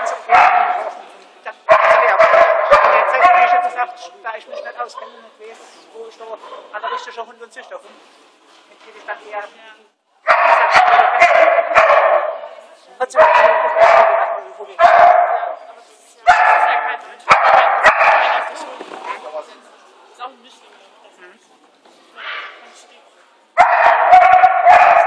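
A woman calls out commands to a dog in a large indoor hall.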